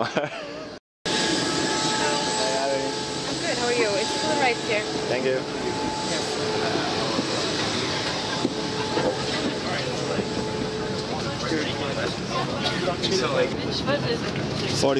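Passengers murmur and chatter in the background.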